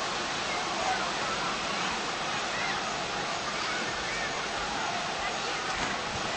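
Water laps and splashes steadily in a pool.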